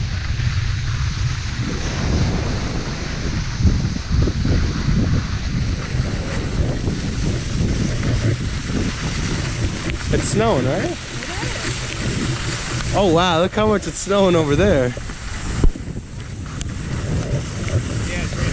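Wind rushes and buffets loudly past the microphone.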